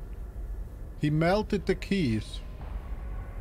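A man speaks briefly with animation, close to a microphone.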